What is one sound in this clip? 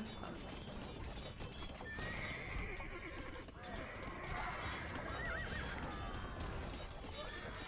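Swords clash and clatter as a battle goes on.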